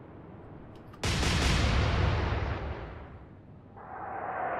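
Heavy naval guns fire with a deep, booming blast.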